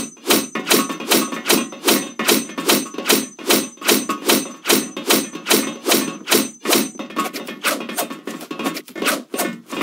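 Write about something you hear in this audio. A knife slashes and scrapes against wood, over and over.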